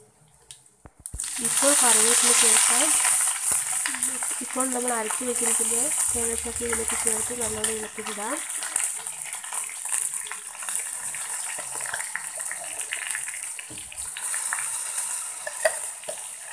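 Leaves hiss and sizzle loudly as they drop into hot oil.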